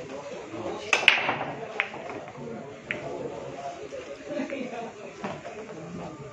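Pool balls clack against each other and roll across the table.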